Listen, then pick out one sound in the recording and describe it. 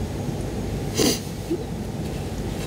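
A young woman makes a short soft vocal sound close by.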